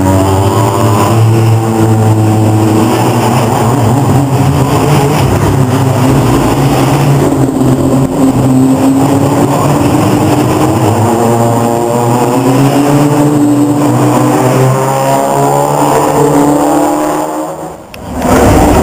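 Racing car engines rumble and rev loudly nearby.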